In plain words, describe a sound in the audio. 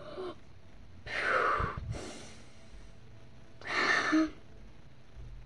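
A young girl breathes out loudly.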